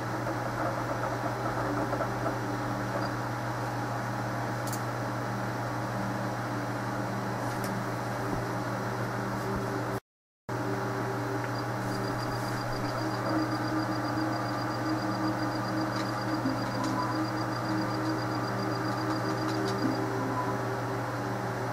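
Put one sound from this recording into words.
Soft, steady game music plays from a television speaker.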